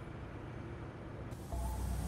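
A motorcycle engine rumbles.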